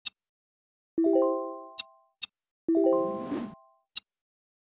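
Short electronic menu tones blip.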